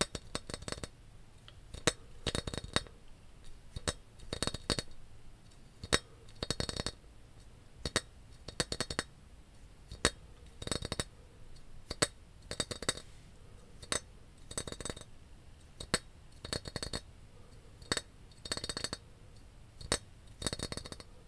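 Fingernails tap a glass bottle in a rhythm, close to a microphone.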